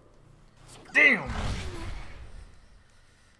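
A young man shouts loudly into a close microphone.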